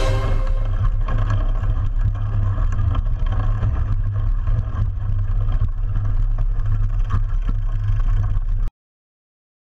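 Wind rumbles loudly past a bicycle.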